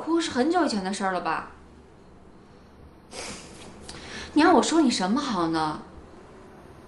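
A young woman speaks in an emotional, pleading voice close by.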